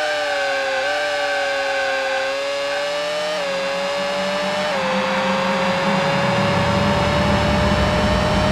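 A racing car engine whines at high pitch, dropping briefly with each gear change as it speeds up.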